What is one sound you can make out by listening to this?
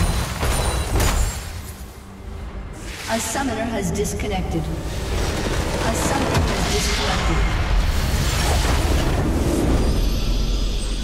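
Game sound effects of spells and explosions crackle and boom.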